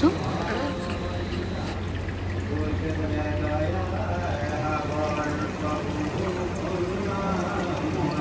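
A group of men and women chant together in unison.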